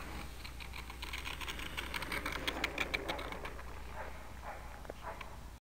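A small model plane rattles and clatters as it rolls fast over rough tarmac.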